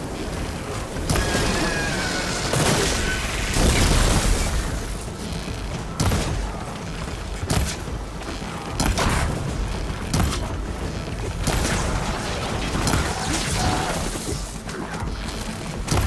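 Mechanical creatures screech and clank nearby.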